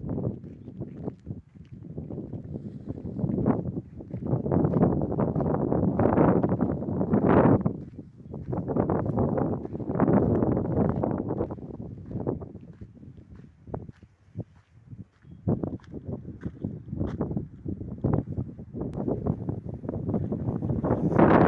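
Wind gusts loudly across open ground outdoors.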